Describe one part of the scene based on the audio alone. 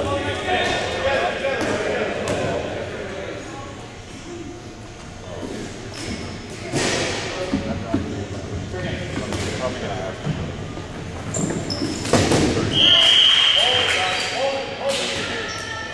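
Rubber balls bounce and smack on a hard floor in a large echoing hall.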